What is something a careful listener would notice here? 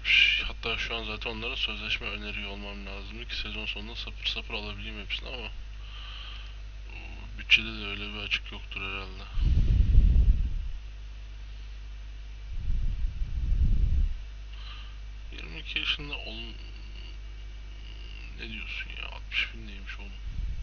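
A young man talks calmly and close into a microphone, with pauses.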